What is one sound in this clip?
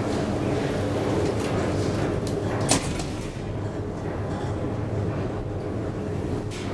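An elevator hums steadily.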